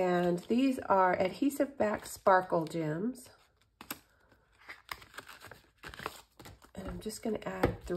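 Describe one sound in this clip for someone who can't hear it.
Paper rustles softly.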